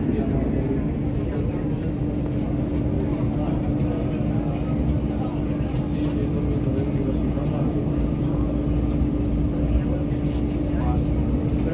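A metro train rumbles and hums steadily as it moves.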